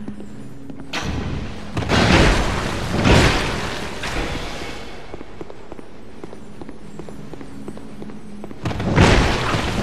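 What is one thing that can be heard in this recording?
Heavy weapons clash and thud in an armoured fight.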